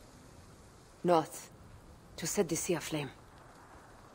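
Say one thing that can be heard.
A young woman speaks softly at close range.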